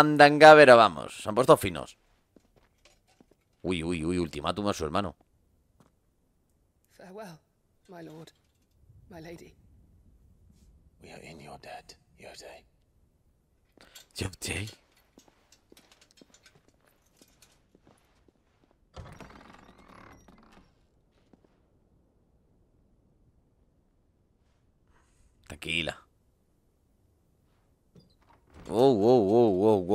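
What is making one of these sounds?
A man talks into a nearby microphone, in short bursts.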